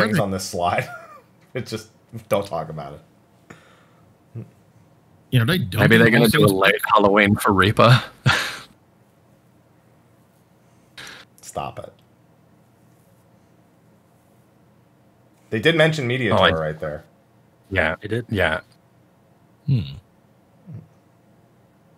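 Several men talk and laugh with animation over an online call, close to their microphones.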